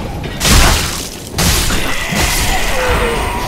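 A sword strikes hard with a heavy slashing impact.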